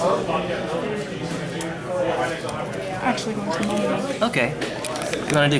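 Playing cards rustle and tap as hands handle them.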